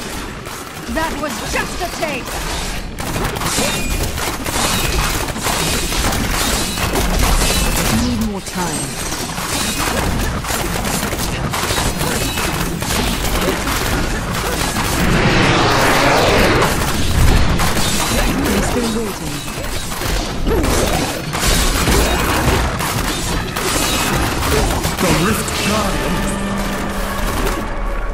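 Game spell effects crackle and blast without pause.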